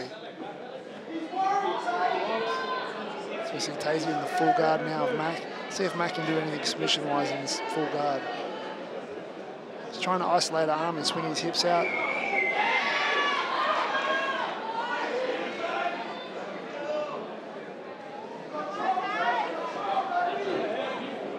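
Men in a crowd shout nearby.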